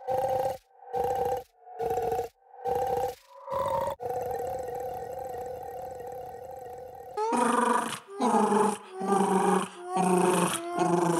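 Cartoon creatures sing short, bouncy musical phrases in quick bursts.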